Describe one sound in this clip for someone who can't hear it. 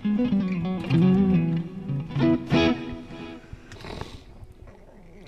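An electric guitar plays a few notes.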